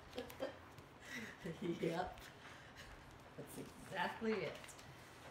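A woman speaks and laughs close by.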